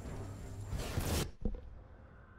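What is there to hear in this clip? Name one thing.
Ice crackles and shatters with heavy crunching impacts.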